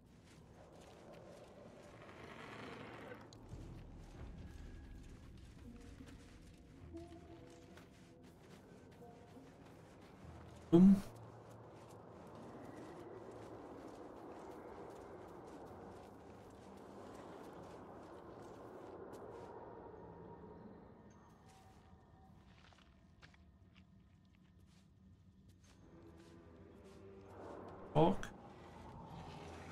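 A man talks calmly into a nearby microphone.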